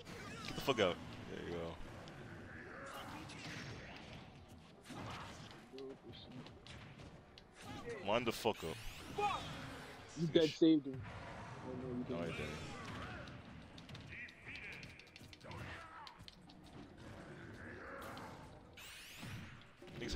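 Game fighters clash with whooshing swipes and crackling hits.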